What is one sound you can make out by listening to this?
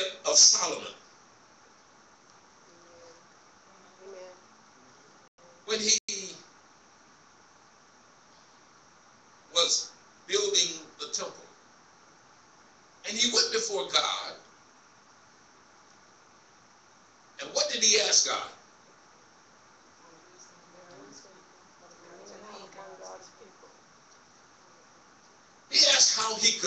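A man preaches loudly into a microphone in bursts, with pauses, in an echoing hall.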